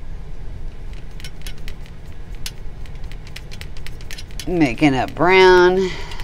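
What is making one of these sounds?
A paintbrush taps and swishes against a metal paint tin.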